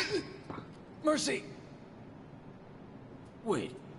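A young man speaks tensely.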